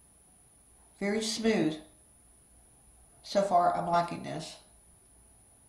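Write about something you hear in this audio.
A woman speaks calmly and close to the microphone in short bursts.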